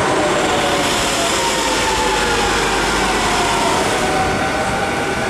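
Train wheels squeal with gliding high tones.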